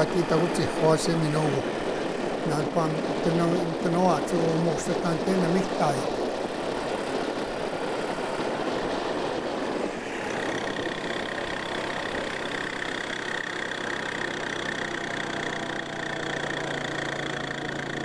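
Tyres crunch on a gravel track.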